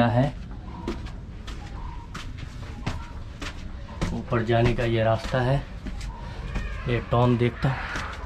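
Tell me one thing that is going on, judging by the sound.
Footsteps scuff on stone steps.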